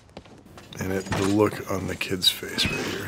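A man shouts with strain nearby.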